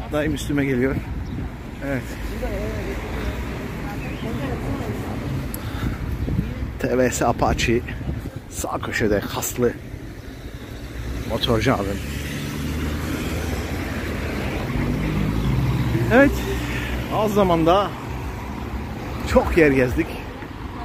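Traffic rumbles steadily on a nearby street.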